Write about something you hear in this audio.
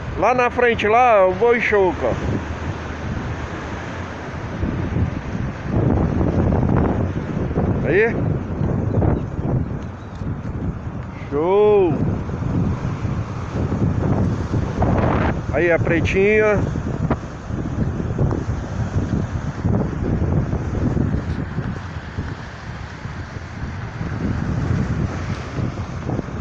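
Waves break and wash onto a rocky shore.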